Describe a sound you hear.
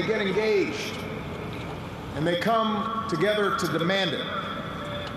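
A man speaks slowly and forcefully into a microphone.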